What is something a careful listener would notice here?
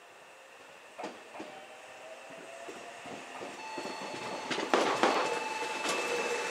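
A train approaches slowly, wheels squealing and clattering on the rails.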